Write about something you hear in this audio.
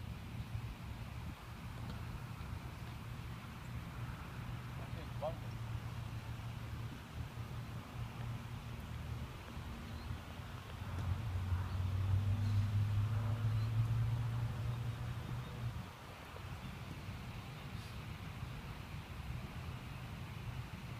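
Wind rumbles steadily across the microphone outdoors, with gusts getting stronger for a while.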